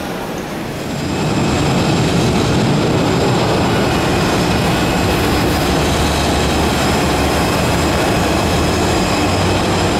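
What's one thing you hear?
A jet engine roars steadily outdoors.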